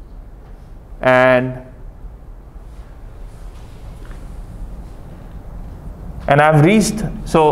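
A man speaks calmly, lecturing in a room.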